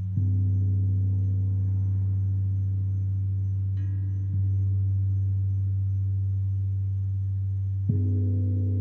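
A large gong is struck softly and hums with a deep, steady drone.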